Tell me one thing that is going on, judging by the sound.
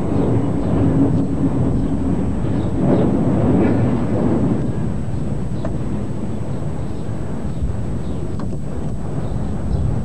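Garden shears snip through small branches.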